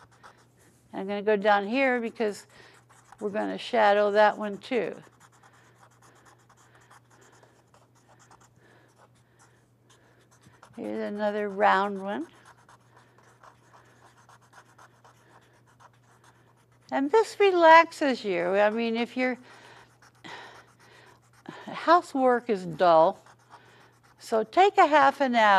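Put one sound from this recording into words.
An elderly woman talks calmly, close by, in short phrases with pauses.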